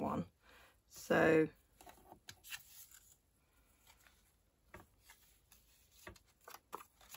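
Paper rustles and slides as hands handle card pieces.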